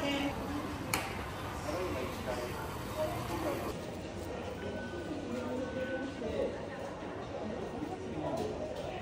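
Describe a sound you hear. Voices of men and women murmur in the distance inside a large hall.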